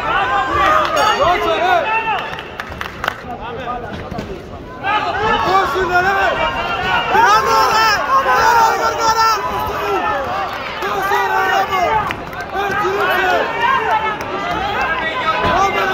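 Several men shout encouragement close by in a large echoing hall.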